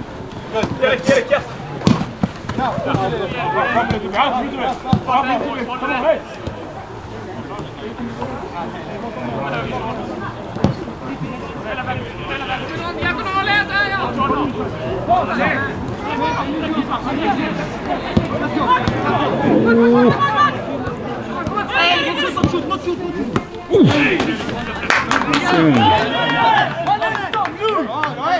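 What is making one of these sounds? A football thumps as it is kicked.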